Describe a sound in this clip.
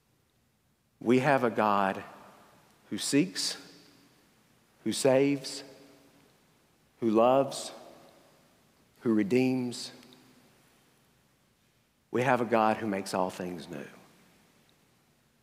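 A man speaks through a microphone in short phrases with long pauses, echoing in a large hall.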